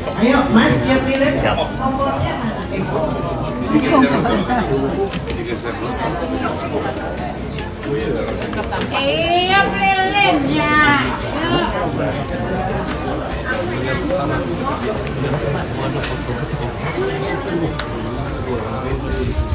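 A crowd chatters in a busy echoing room.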